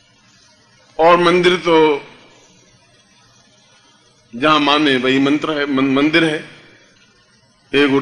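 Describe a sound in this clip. A middle-aged man chants loudly and forcefully in bursts.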